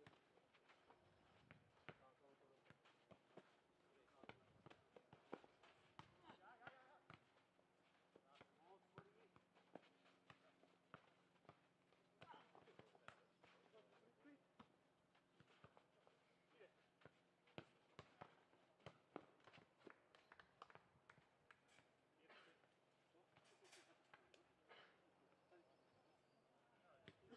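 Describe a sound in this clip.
A ball thuds off feet and the ground again and again.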